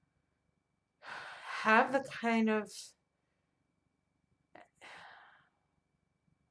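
A middle-aged woman speaks calmly and close by, with pauses.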